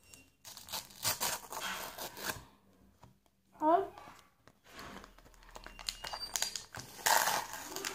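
Foil wrappers crinkle and tear as they are opened.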